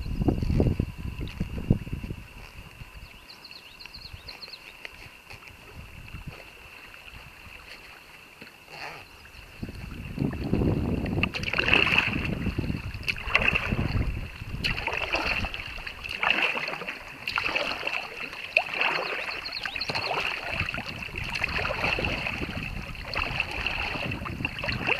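Water laps against the hull of a kayak.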